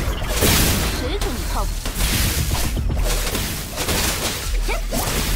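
Game magic blasts and energy strikes whoosh and crackle.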